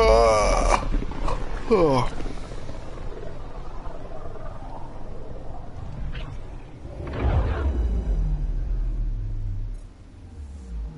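A deep rushing whoosh swells and then fades away.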